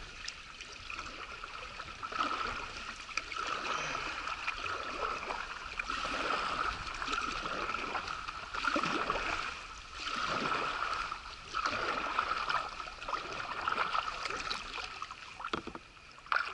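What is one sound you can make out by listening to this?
A paddle dips and splashes rhythmically through water.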